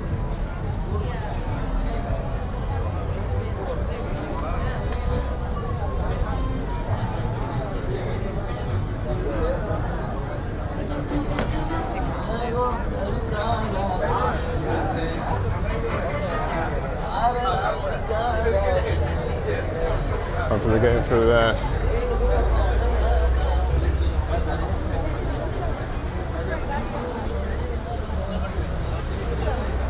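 A crowd of diners chatters all around outdoors.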